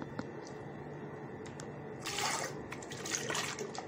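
Thick sauce pours from a jug into a pot.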